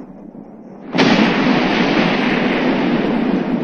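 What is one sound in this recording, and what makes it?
A large explosion booms and roars.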